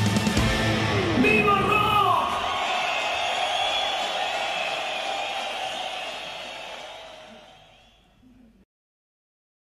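A rock band plays loudly and comes to an end.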